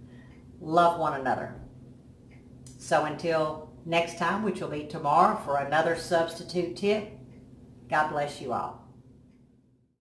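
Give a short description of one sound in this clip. A woman speaks calmly and warmly close to a microphone, in short phrases with pauses.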